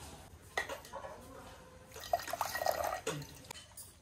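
Water pours from a cup into cupped hands and splashes onto a metal plate.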